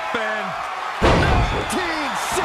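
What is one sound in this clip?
A body slams down hard onto a wrestling mat with a loud thud.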